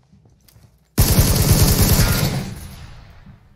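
A rifle fires a loud rapid burst.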